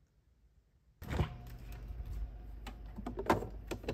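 Plastic packets rustle and clatter.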